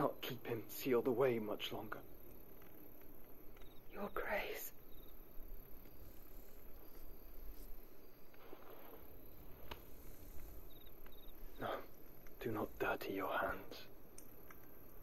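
A young man speaks quietly and gravely.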